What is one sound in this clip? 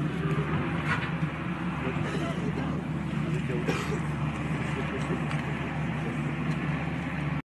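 Several men talk at once nearby, in a low murmur.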